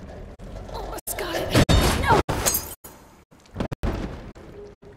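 A heavy body falls and crashes onto metal.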